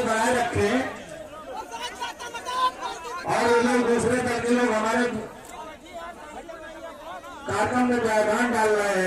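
A crowd of men chants slogans loudly in unison outdoors.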